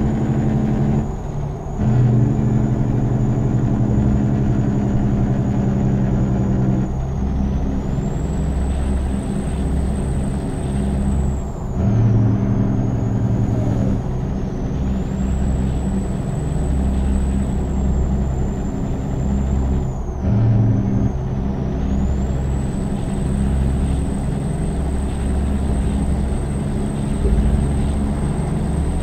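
A big-rig diesel truck engine pulls under load, dropping briefly at each gear shift.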